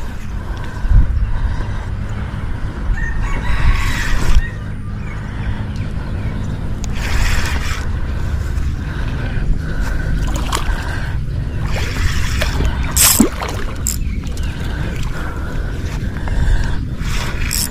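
A fishing reel clicks and whirs as it is wound.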